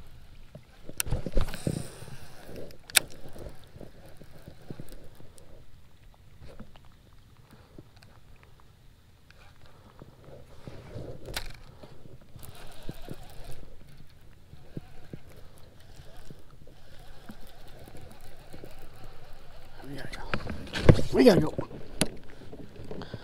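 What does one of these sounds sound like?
A baitcasting reel whirs and clicks as its handle is cranked.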